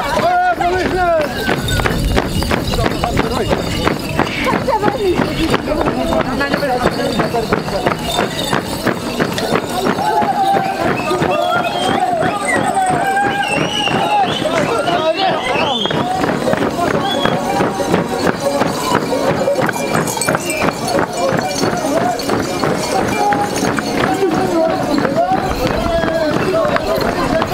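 Many feet stamp rhythmically on a dirt street.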